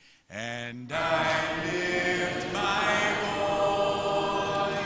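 A man speaks through a loudspeaker in an echoing hall.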